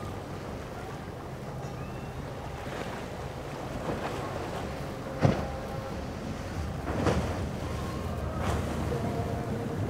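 Waves splash and crash against the boat hulls and rocks.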